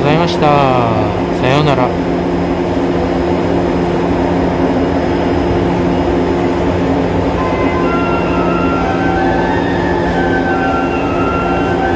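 An electric train rolls slowly along the rails with a steady hum and a motor whine.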